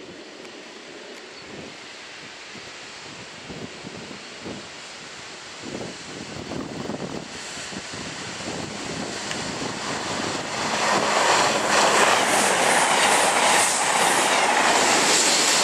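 A diesel freight train rumbles closer on the rails.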